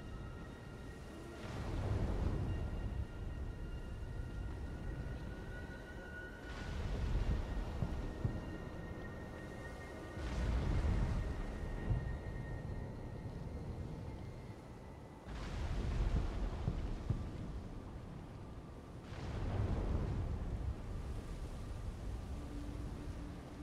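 Leaves and plants rustle close by.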